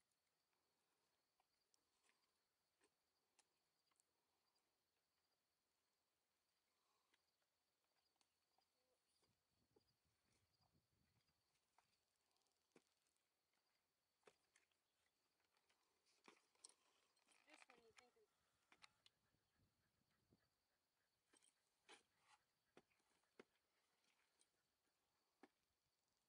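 Saddle leather creaks and buckles clink.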